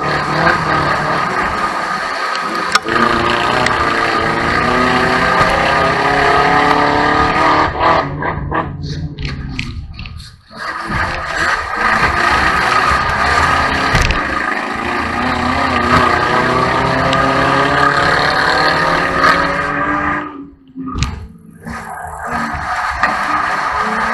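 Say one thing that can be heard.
A car engine roars loudly close by, revving up and down.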